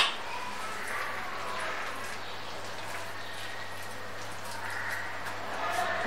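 Dry chickpeas rustle as a hand stirs them in a plastic bowl.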